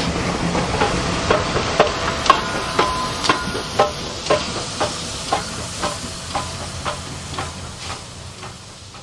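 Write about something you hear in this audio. Steam locomotive wheels click over rail joints.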